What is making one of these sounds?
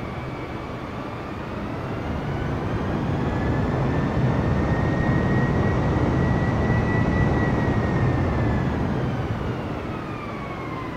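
A small propeller plane's engine drones steadily, swelling louder and then easing off.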